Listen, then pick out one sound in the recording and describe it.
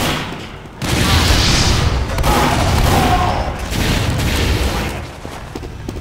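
Explosions boom and roar close by.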